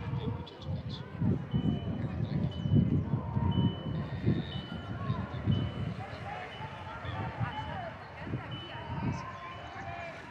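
Young players shout to each other across an open field, some distance away.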